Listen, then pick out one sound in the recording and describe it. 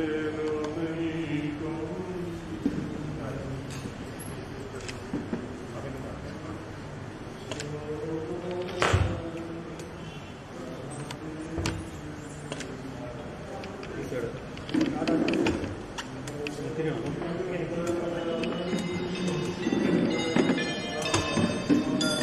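Several men murmur and talk quietly nearby.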